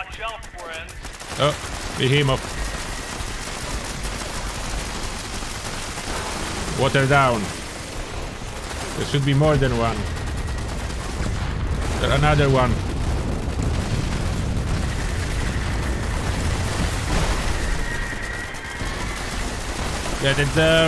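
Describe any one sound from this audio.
Gunfire and explosions rumble from a game.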